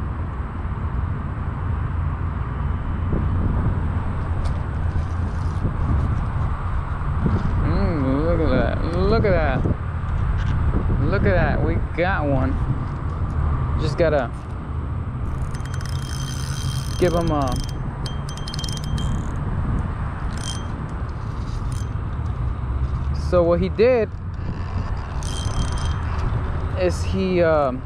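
A fishing reel whirs and clicks as its handle is cranked.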